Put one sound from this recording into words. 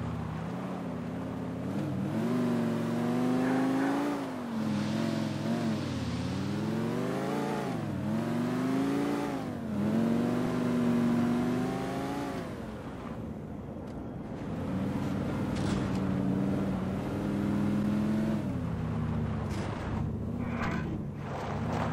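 Car engines rev up and down as they race.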